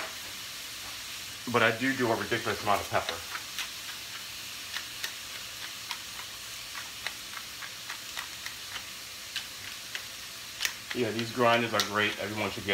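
Onions sizzle softly in a frying pan.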